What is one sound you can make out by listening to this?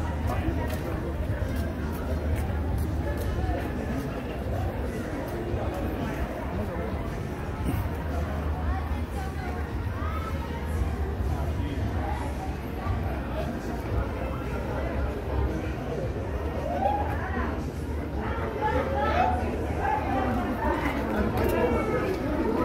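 Several people chatter nearby outdoors, with voices growing louder toward the end.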